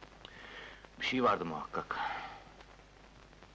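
A man speaks loudly and with feeling, nearby.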